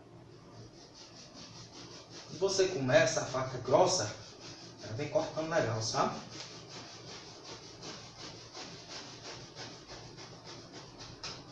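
A hand brushes and pats a foam mattress softly.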